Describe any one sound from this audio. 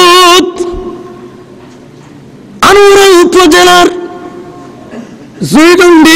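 A man chants loudly into a microphone, his voice echoing in a reverberant space.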